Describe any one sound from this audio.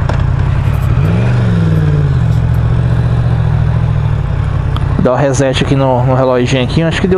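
A motorcycle engine revs up sharply and then settles.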